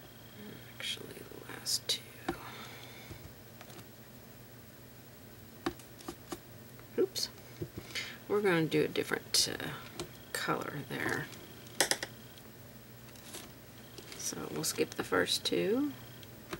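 A paintbrush strokes softly across a canvas.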